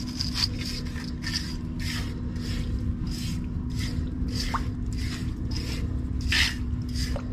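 A metal scraper scrapes across wet concrete in short strokes.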